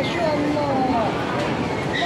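An elderly man laughs close by.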